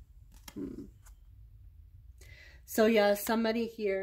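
A playing card is laid down on a table with a soft tap.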